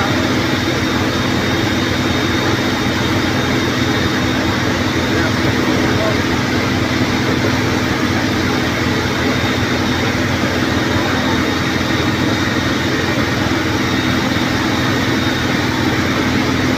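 A large fire roars and crackles.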